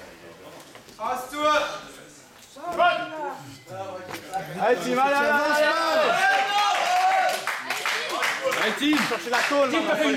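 A man shouts short calls in an echoing hall.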